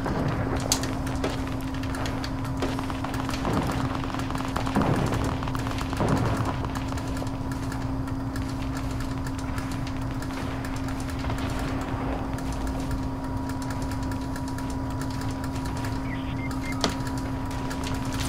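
Building pieces snap into place with quick knocks.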